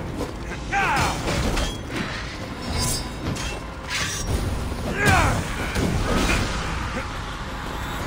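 Weapons clash and thud in a close fight.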